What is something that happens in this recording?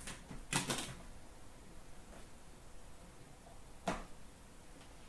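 Hands click and tap on a hard plastic case.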